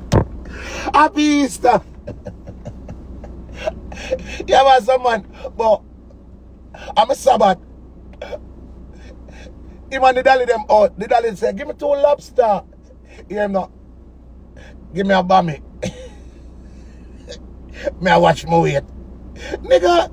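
A man talks with animation, close to a phone microphone.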